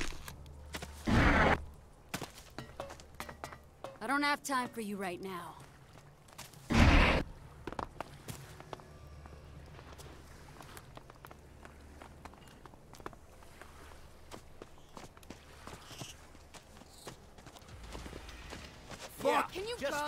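Footsteps run across dirt and wooden boards.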